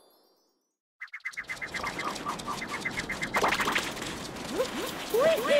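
A game character's footsteps patter quickly on the ground.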